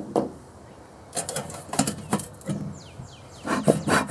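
Metal clinks as a lid is closed on a metal can.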